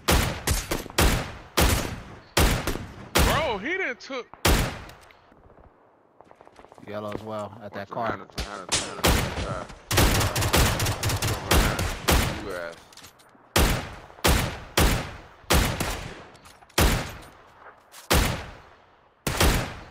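Rifle shots crack in quick bursts, each followed by a short echo.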